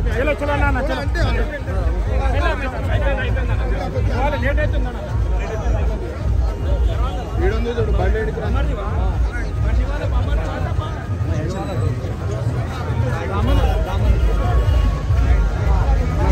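A dense crowd of men talks and shouts loudly all around, close by.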